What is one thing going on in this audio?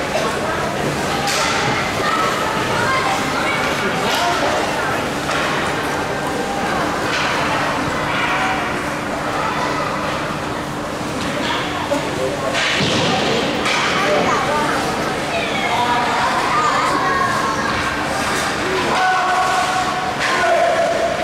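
Young children shout in a large echoing hall.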